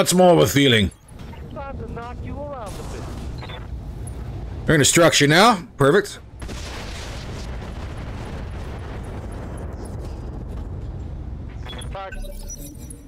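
Heavy weapons fire and explosions rumble in battle.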